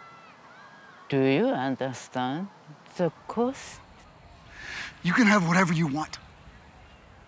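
An elderly woman speaks quietly and gravely nearby.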